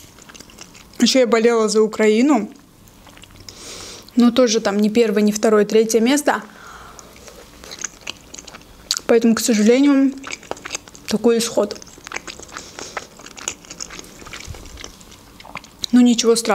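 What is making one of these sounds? A young woman talks close to a microphone in a soft, animated voice.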